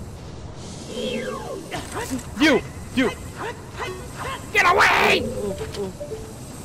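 A sword swings and clangs in short bursts.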